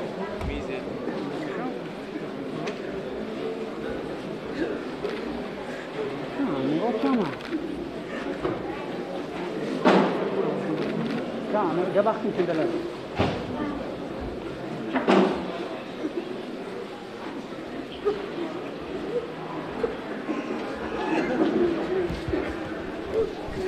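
A crowd of men murmurs and weeps in a large echoing hall.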